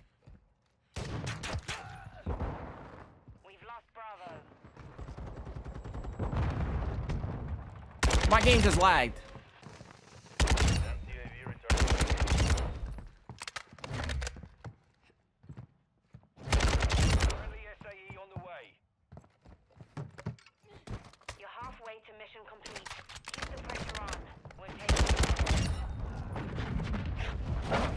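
Game gunfire crackles in rapid bursts.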